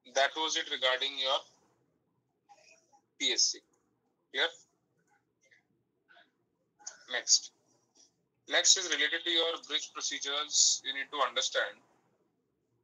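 A man speaks through an online call, heard through a small speaker.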